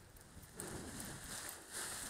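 A paraglider wing's fabric flaps and rustles as it comes down.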